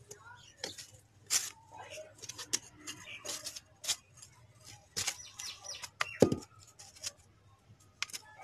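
A metal scoop scrapes and scratches through dry soil.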